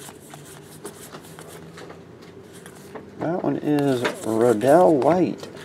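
Trading cards shuffle and slap softly against each other.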